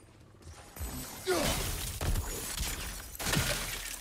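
A crystal shatters with a sparkling burst.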